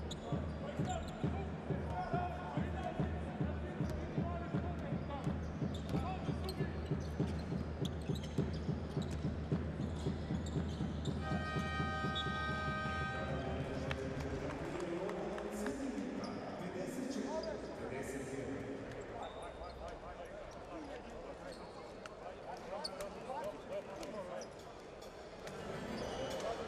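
A crowd in a large echoing hall cheers and murmurs.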